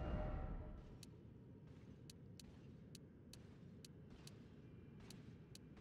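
Short, high menu clicks tick one after another.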